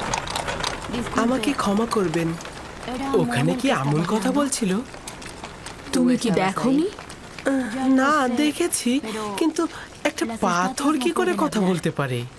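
A boy speaks earnestly and close by.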